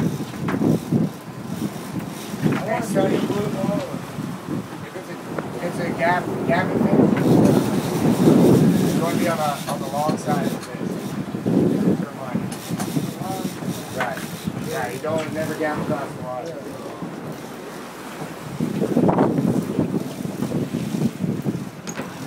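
Wind blows and waves splash against a boat outdoors.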